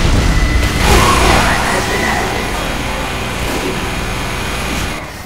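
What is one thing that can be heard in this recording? A rotary gun fires in a rapid, rattling stream.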